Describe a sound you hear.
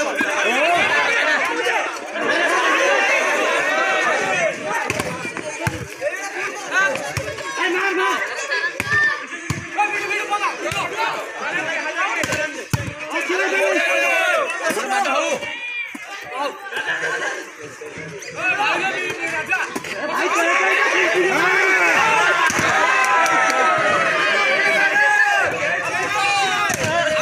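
A crowd of young men shout and cheer outdoors.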